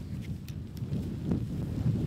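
Tent fabric rustles as it is handled.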